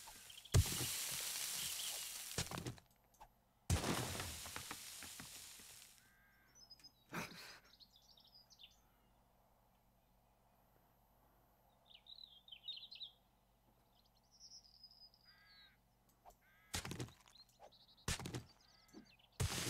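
A pickaxe strikes rock with crunching blows.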